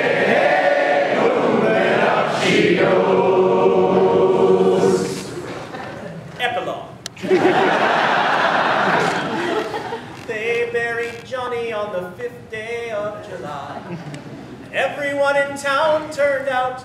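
Two men sing loudly together in an echoing hall.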